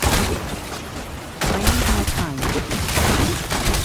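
Lightning bolts crash and crackle in sharp bursts.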